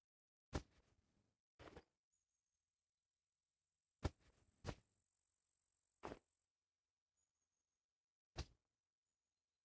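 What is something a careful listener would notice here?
Pieces of gear thump and rustle as they are picked up and dropped.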